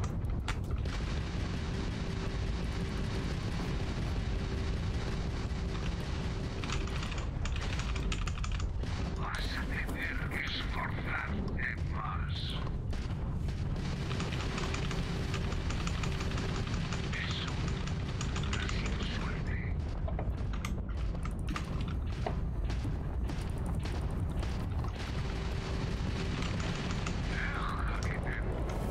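A spaceship engine hums low and steady.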